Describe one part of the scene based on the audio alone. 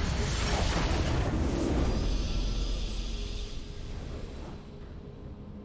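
A game's base explodes with a loud crackling blast that fades away.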